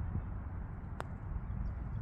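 A putter taps a golf ball softly.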